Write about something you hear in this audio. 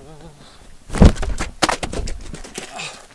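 A person falls hard onto pavement with a thud.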